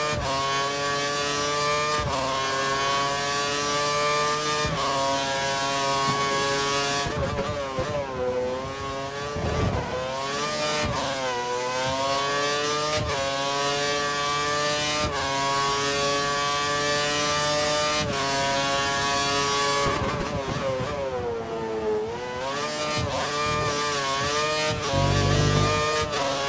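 A racing car engine screams at high revs, shifting up through the gears and dropping in pitch when braking for corners.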